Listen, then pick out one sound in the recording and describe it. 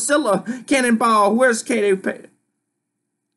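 A man reads aloud with animation, close to a microphone.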